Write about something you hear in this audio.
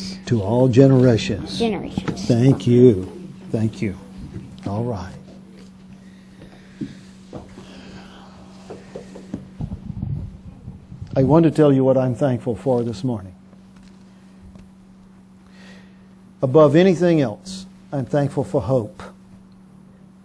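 A man speaks with emphasis through a microphone and loudspeakers.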